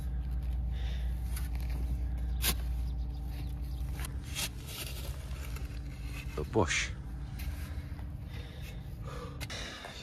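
A shovel scrapes and chops into dry soil.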